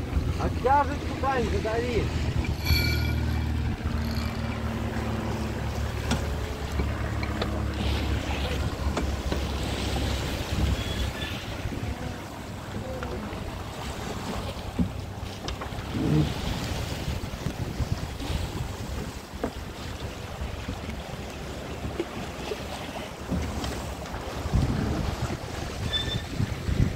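Waves splash and rush against a boat's hull.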